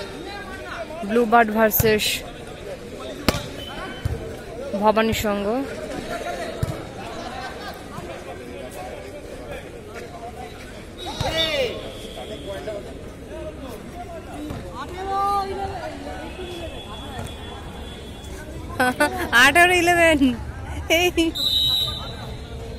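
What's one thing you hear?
Young men shout loudly outdoors during a volleyball game.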